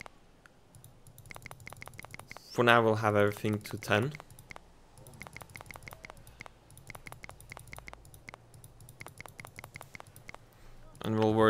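Menu buttons click in quick, soft taps.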